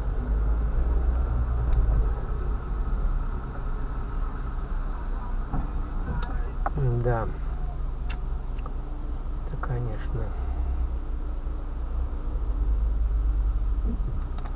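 Traffic rumbles by on the street.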